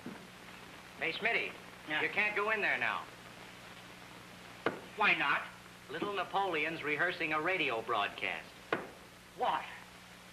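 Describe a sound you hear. An elderly man talks loudly and excitedly close by.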